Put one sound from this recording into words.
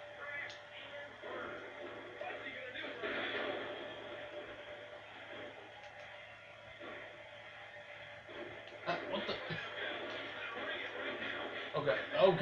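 Wrestling video game sounds play from a television loudspeaker.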